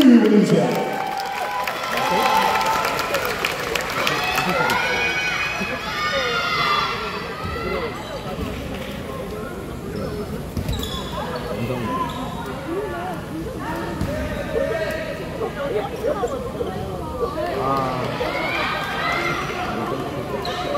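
A crowd of spectators chatters and cheers loudly in a large echoing hall.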